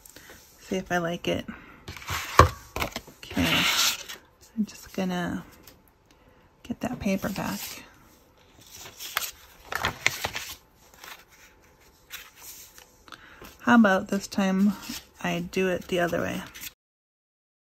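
Paper cards rustle and slide against each other.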